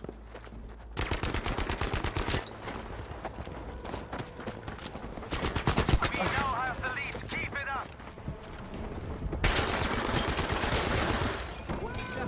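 A gun fires rapid bursts of shots close by.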